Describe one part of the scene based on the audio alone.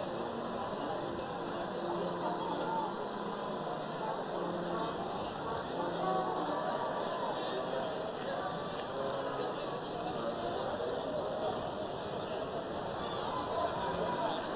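A crowd of young men chatter and talk over one another outdoors.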